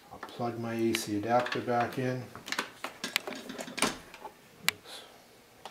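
A glass door clicks and clatters as it slides in its frame.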